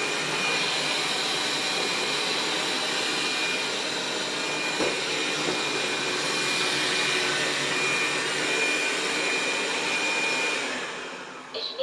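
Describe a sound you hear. A robot vacuum cleaner whirs steadily as it drives across a rug.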